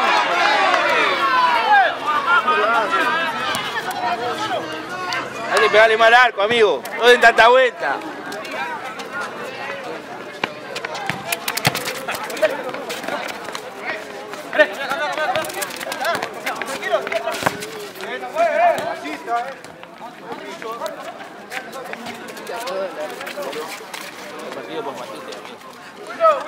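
A ball thuds as players kick it on a hard court.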